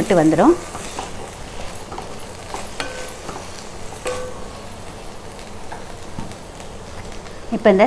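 A wooden spatula scrapes and clinks against a metal pan.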